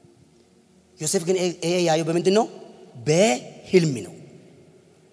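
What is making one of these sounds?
A young man speaks with animation into a microphone over loudspeakers in a large echoing hall.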